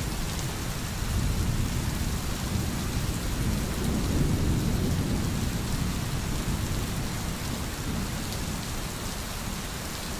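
A stream gurgles over stones.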